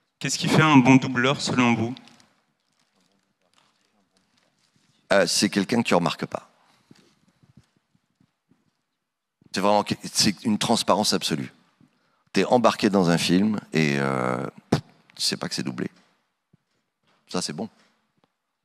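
A middle-aged man speaks with animation into a microphone, heard through loudspeakers in a large hall, in bursts with pauses.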